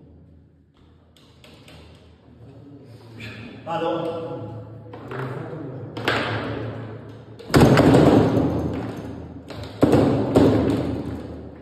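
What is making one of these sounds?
Foosball rods spin and clack as the ball is struck.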